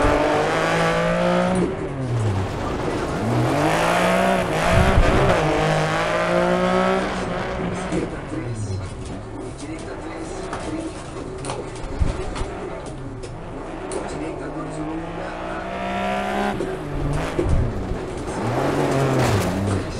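A rally car engine revs hard and drops with each gear change.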